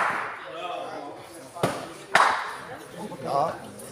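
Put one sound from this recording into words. A bowling ball knocks sharply against another ball.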